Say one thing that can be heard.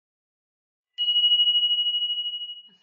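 A small bell dings and rings on.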